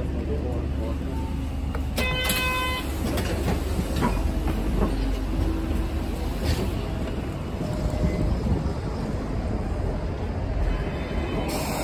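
A train rumbles and rattles steadily along its track.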